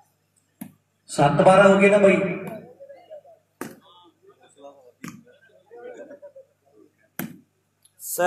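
A volleyball is struck hard by hand again and again.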